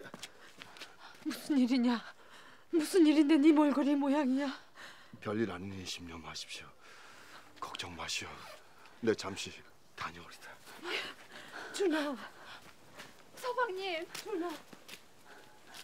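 An elderly woman speaks with feeling, close by.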